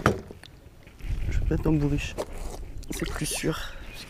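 A small fish splashes into the water close by.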